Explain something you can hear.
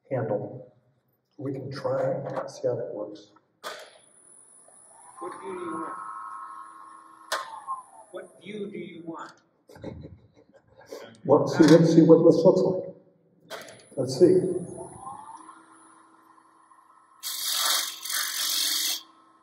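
A wood lathe motor hums as it spins.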